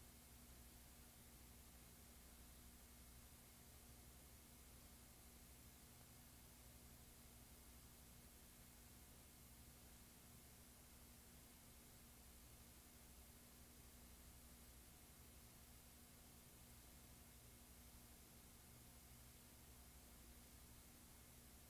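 Television static hisses steadily.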